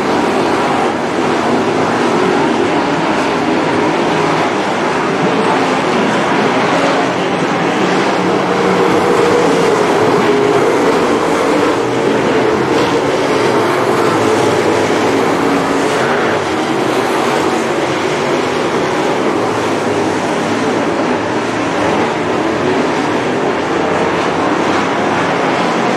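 Race car engines roar loudly as cars speed around a dirt track.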